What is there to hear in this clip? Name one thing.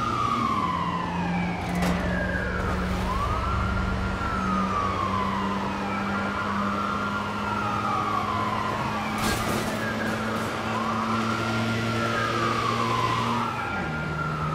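A police siren wails up and down close by.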